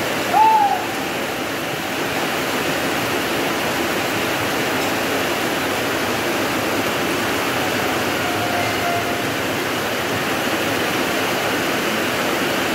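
Heavy rain pours steadily on a wet street outdoors.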